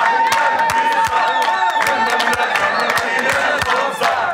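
A man sings out with full voice.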